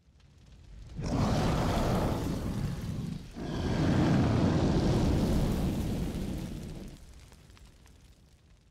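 A dragon breathes a roaring burst of fire.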